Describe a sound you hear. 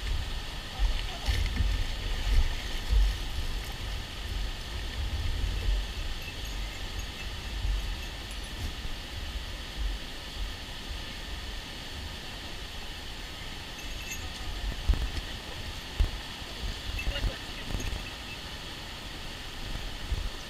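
A river rushes steadily over rocks nearby.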